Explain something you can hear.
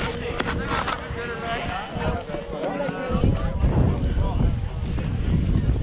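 A snowboard scrapes over packed snow.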